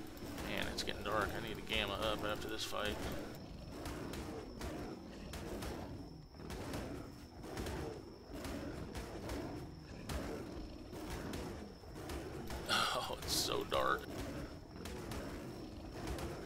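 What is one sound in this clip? Heavy blows thud repeatedly against a large creature.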